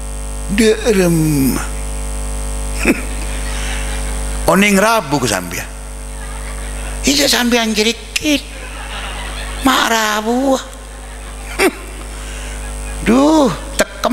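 A man speaks into a microphone with animation, heard through a loudspeaker in a reverberant space.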